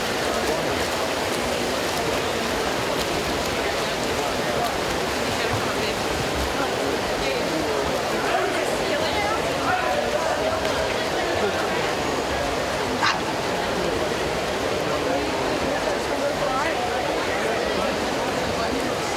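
Swimmers splash and churn the water.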